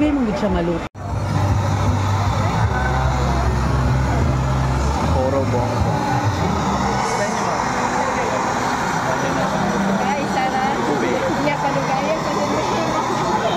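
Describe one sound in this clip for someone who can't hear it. Steam hisses steadily from cooking pots.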